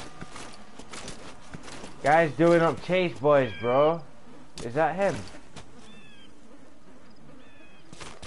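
A body drags and crawls over rough ground with soft rustling.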